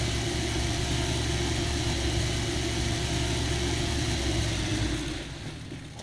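A hovercraft engine roars loudly.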